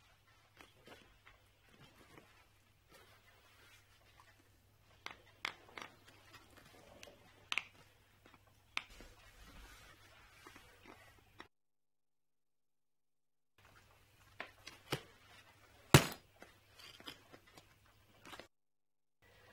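Fingers click and fiddle with a suitcase lock.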